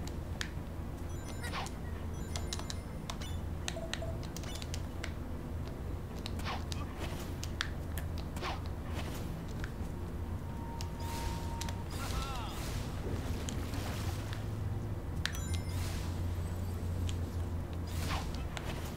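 Upbeat game music plays steadily.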